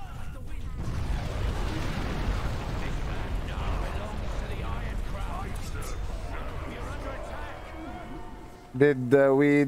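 A huge explosion booms and rumbles away slowly.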